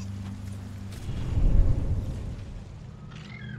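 A deep whoosh swells and fades away.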